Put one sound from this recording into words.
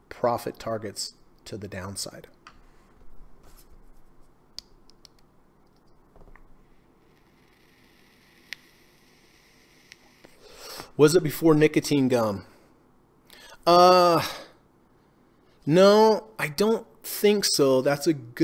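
A middle-aged man talks calmly into a microphone, in bursts with pauses.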